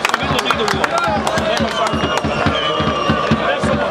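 Young men shout and cheer in celebration outdoors.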